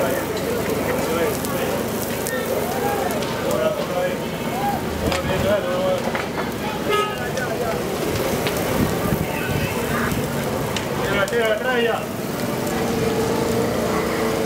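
Men shout and call out loudly outdoors.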